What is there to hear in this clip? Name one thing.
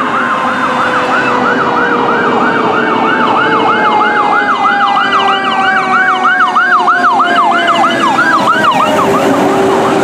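A fire engine siren wails rapidly up and down close by.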